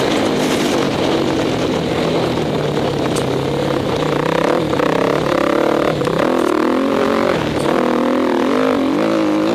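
A dirt bike engine revs loudly up and down close by.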